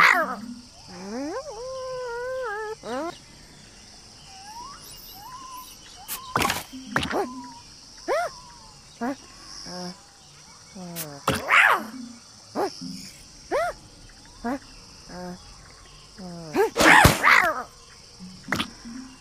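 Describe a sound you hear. Cartoon creatures squeak and chirp in a playful voice.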